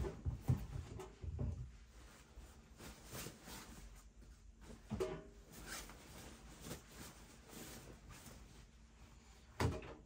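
Clothes rustle as they are pulled from a washing machine.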